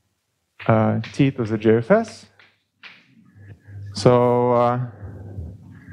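A man speaks with animation, his voice ringing in an echoing room.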